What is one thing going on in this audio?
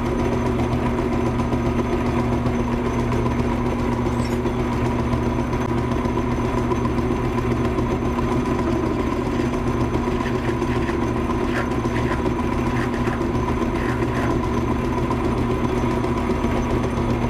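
A drill bit grinds and scrapes into metal.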